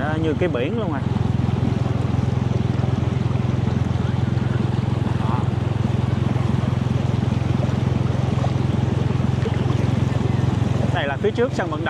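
Floodwater splashes and swishes steadily.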